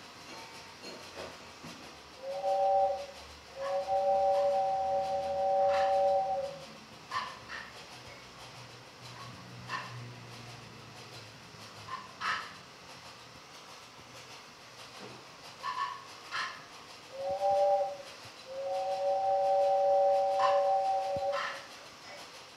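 Small objects click and tap close by.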